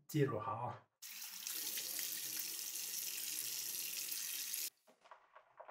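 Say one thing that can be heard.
Tap water runs and splashes into a sink.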